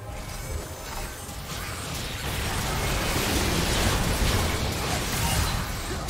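Game spell effects crash and whoosh in a busy fight.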